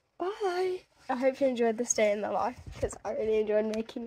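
A young girl laughs close to a phone microphone.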